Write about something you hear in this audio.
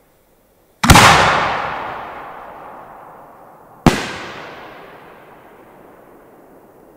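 Fireworks explode with loud, sharp bangs that echo and slowly fade.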